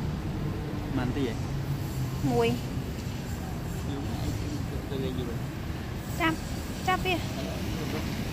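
A puppy whimpers and yips in short high cries.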